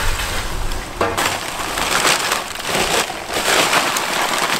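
Lumps of charcoal clatter as they are poured into a metal grill.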